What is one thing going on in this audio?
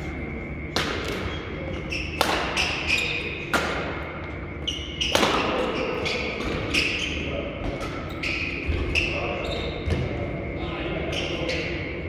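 Shoes squeak on a court floor.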